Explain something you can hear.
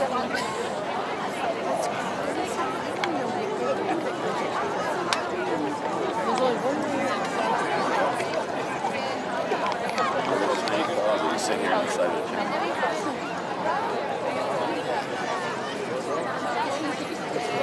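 A large flock of swifts chirps and twitters overhead without a break.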